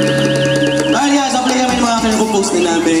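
A man sings into a microphone over the band.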